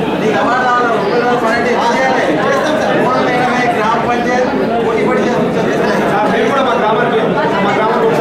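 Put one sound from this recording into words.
A crowd of men and women chatter loudly in the background.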